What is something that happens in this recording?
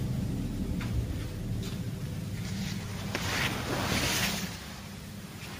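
Clothing fabric rustles and brushes close by.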